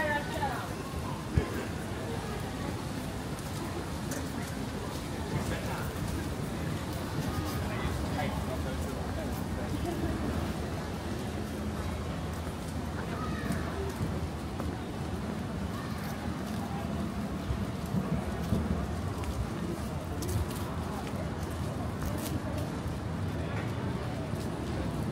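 Footsteps tap on a pavement close by, steady and unhurried.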